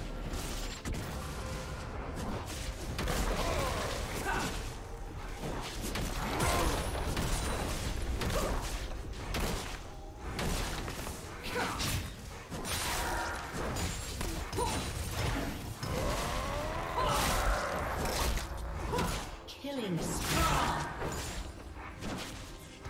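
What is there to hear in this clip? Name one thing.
Game attacks clash and thud rapidly.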